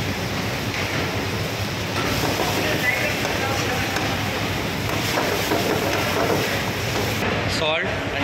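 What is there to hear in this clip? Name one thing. A metal ladle scrapes against a pan.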